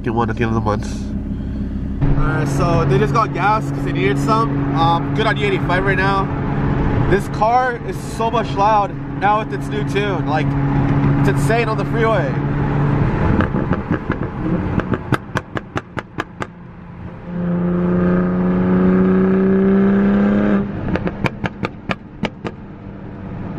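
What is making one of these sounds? A car engine drones steadily and then revs higher.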